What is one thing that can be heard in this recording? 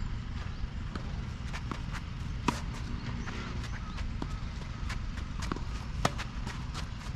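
Tennis rackets hit a ball back and forth outdoors.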